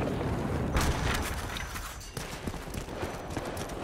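Gunfire cracks in rapid bursts.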